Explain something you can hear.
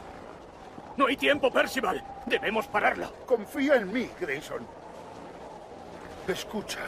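A second man answers in a strained, urgent voice.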